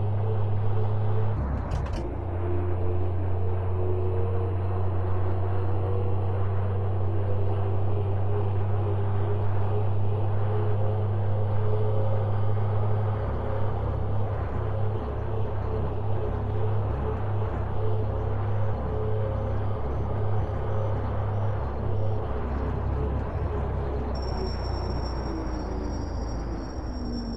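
A truck engine hums steadily at a low pitch.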